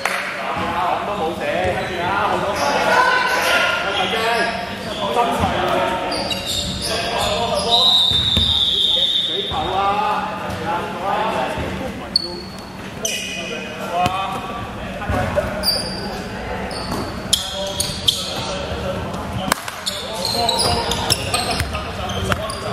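Men shout and call out across a large echoing hall.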